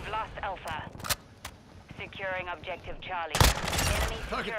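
A rifle fires a few sharp shots close by.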